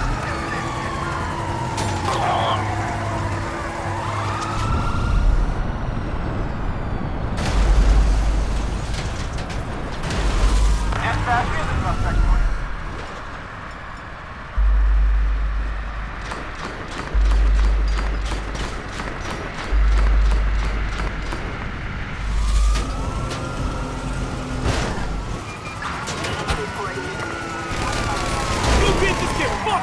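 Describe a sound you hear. A car engine roars.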